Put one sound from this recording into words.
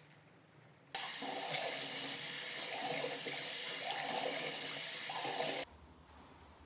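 Water splashes in a sink as a face is rinsed.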